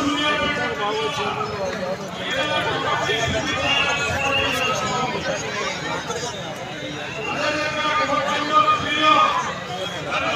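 A large outdoor crowd chatters and cheers loudly.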